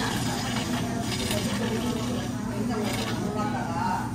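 Whipped cream sputters from a can.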